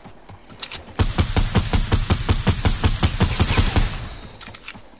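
Gunshots fire in a rapid, steady burst.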